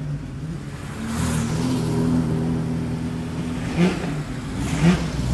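A vintage car engine rumbles as the car passes close by.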